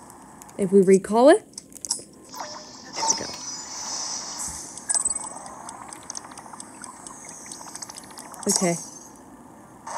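Video game sound effects chime and whoosh through a small speaker.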